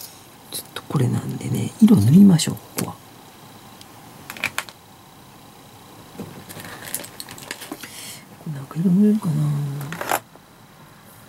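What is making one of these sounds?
Small plastic parts click and rustle in a pair of hands.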